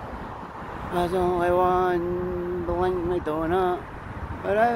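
A man speaks close to a phone microphone, outdoors.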